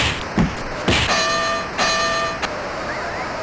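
A boxing bell rings twice.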